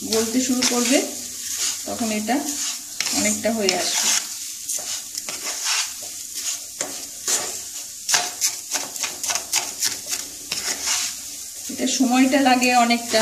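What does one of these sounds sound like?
A wooden spatula scrapes and stirs crumbly food in a metal pan.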